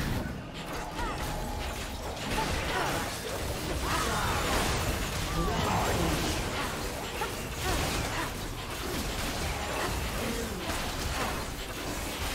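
Magic spells whoosh, crackle and burst during a fast fight.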